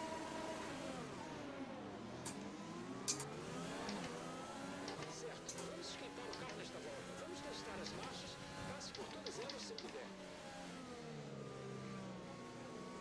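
Many racing car engines whine past close by.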